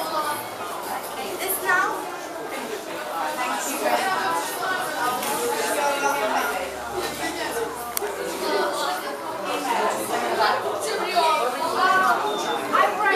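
Many children chatter and talk at once in a busy room.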